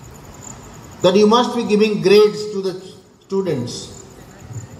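A man speaks with animation through a microphone and loudspeakers, echoing under a roof.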